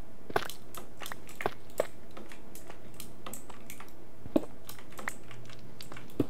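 Stone blocks crack and clatter as a pickaxe breaks them.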